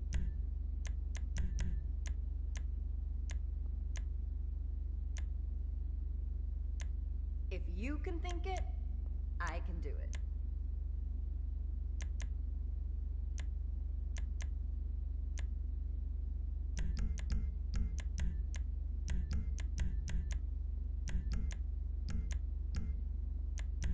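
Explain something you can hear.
Short menu clicks tick again and again.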